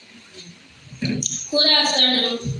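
A young woman sings loudly through a microphone.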